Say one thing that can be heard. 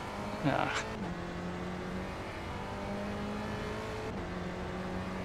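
A racing car engine dips briefly in pitch as gears shift.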